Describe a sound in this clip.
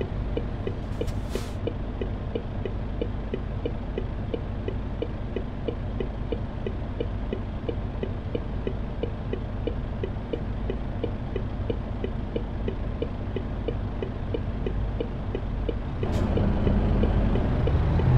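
A truck engine rumbles steadily and grows louder near the end.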